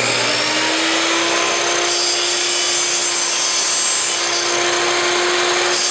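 A saw blade cuts through wood.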